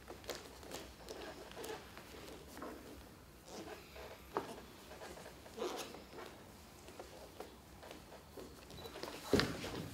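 Bare feet thump and shuffle on a wooden stage floor.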